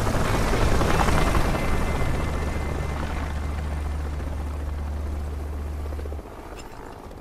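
A heavy aircraft engine drones loudly overhead.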